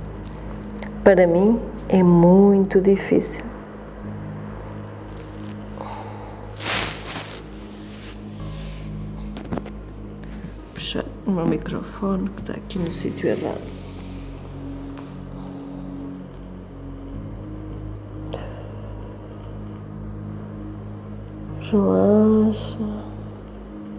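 A woman speaks calmly and softly, close to a microphone.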